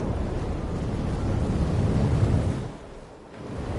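Water splashes as a man wades through the sea.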